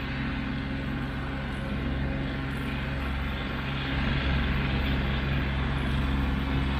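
A tractor engine drones steadily and grows louder as it approaches.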